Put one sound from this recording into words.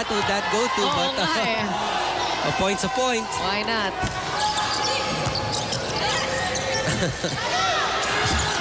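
A crowd cheers and murmurs in a large echoing hall.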